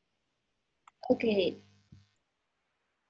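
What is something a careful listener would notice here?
A young woman speaks briefly and calmly, close to the microphone.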